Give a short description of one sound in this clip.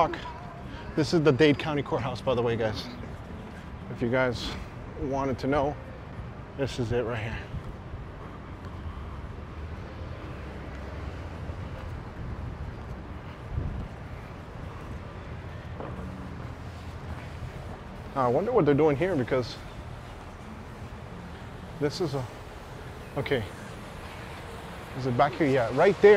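City traffic rumbles faintly in the distance outdoors.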